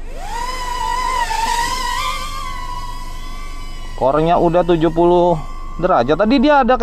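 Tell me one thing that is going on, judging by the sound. A small drone's motors whine high and rise in pitch as it speeds up.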